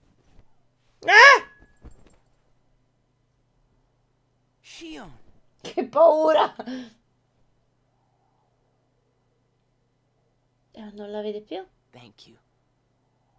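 A young woman speaks and exclaims with animation close to a microphone.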